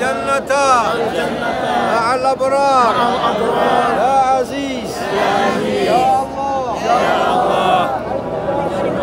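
A crowd of men chants loudly together in unison, close by.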